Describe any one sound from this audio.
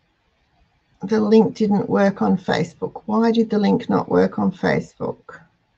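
An elderly woman speaks calmly and close to a microphone.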